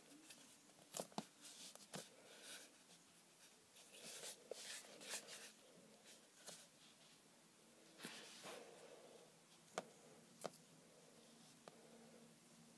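Fingers tap and knock lightly on a wooden table.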